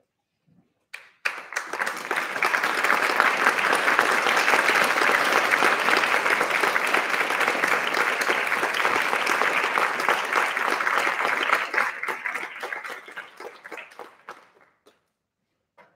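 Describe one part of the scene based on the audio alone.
An audience claps loudly in a large hall, then the applause fades.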